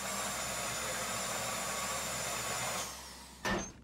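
A power drill whines steadily, boring into metal.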